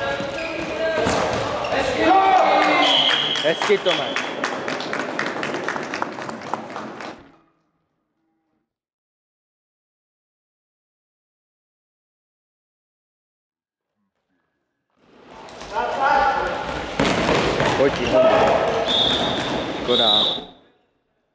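Sport shoes squeak on a hard floor.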